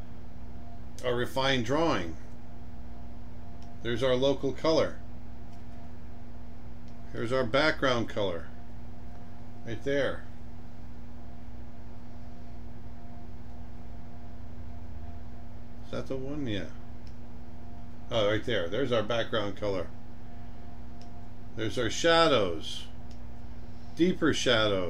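An older man talks calmly and close to a microphone, in short phrases with pauses.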